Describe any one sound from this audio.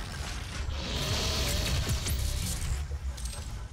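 A large energy blast bursts with a roar.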